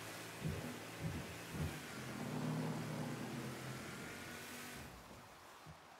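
A motorboat engine roars over water.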